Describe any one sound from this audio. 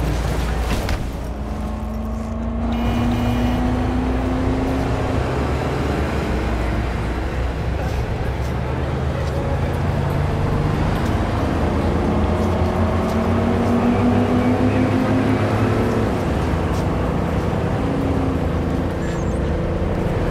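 A car engine revs and roars as the car speeds up and shifts gears.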